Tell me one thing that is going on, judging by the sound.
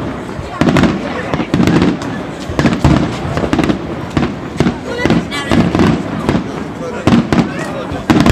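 A flock of birds chirps in the distance.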